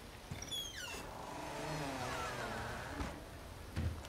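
A wooden door creaks slowly open.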